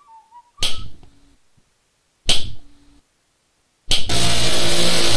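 A ruler slaps sharply.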